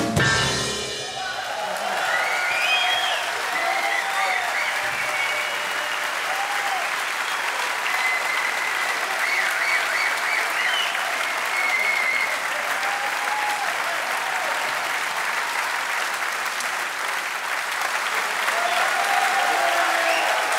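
A large audience applauds loudly.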